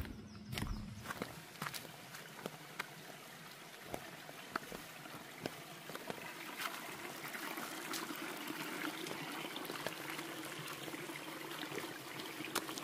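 Sandals slap and scrape on rocks.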